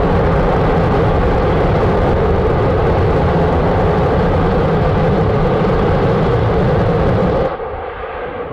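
A rocket engine roars steadily in the distance.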